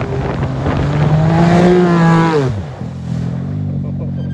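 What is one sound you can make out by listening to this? Studded tyres scrape and spray across ice.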